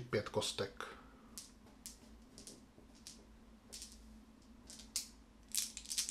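Small dice click together in a hand.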